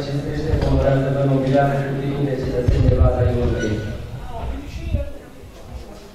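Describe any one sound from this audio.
An older man reads out into a microphone, heard through loudspeakers in an echoing hall.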